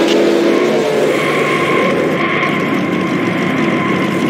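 Tyres screech as race cars spin and crash.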